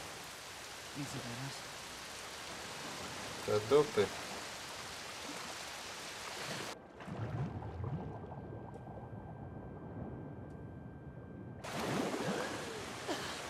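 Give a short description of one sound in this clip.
A man talks into a microphone close by.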